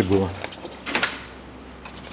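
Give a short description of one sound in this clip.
A plastic cap clicks and rattles as it is pulled off.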